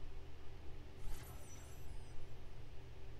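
A bright swooshing chime rings out.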